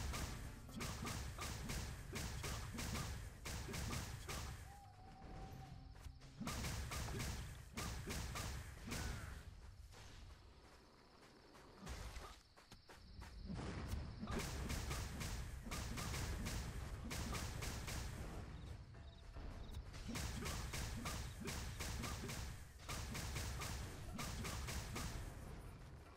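Magic spells crackle and burst as fighters clash.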